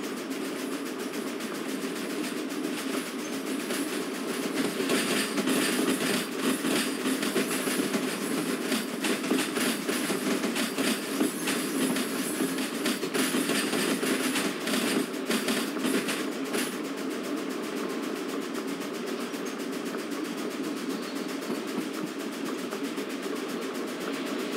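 A steam locomotive rumbles steadily along the track.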